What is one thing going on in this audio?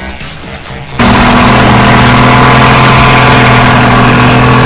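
A heavy diesel engine roars loudly and steadily close by.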